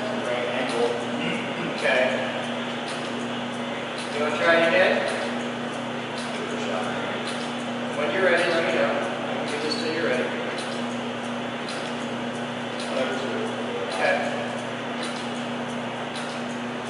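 A machine hums steadily.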